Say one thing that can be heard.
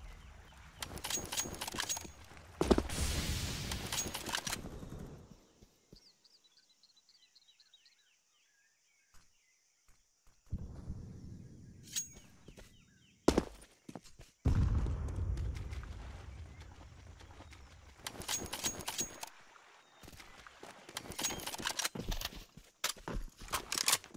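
Footsteps tread quickly on stone.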